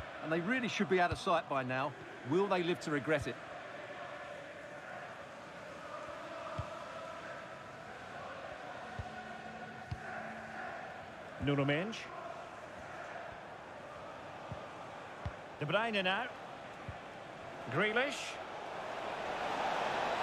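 A stadium crowd murmurs steadily, swelling toward the end.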